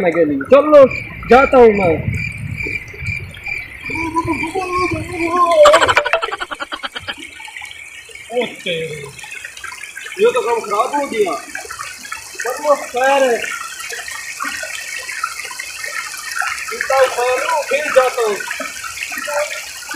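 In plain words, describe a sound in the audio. A shallow stream trickles over rocks.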